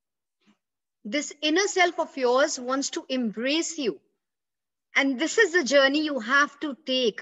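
A woman speaks with animation, close to the microphone.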